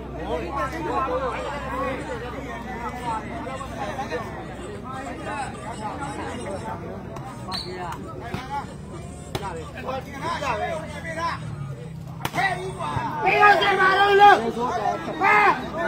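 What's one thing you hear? A crowd of men chatters and shouts outdoors.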